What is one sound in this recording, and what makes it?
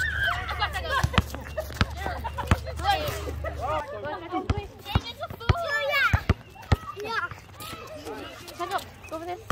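Several young men and women shout and call out with animation outdoors.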